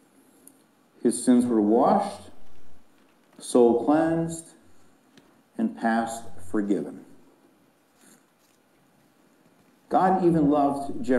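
A man speaks calmly through a microphone in a large room, pausing between phrases.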